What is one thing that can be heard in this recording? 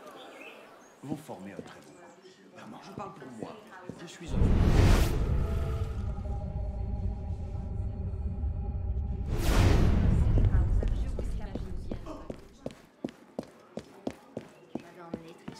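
Quick footsteps tap across a hard floor and up stone stairs.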